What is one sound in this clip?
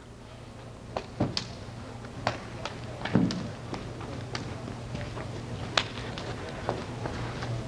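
Feet shuffle and thump on a carpeted floor.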